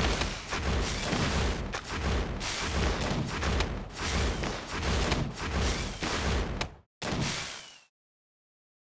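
Mobile game battle sound effects clash and zap.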